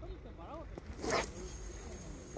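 A fishing rod swishes sharply through the air in a cast.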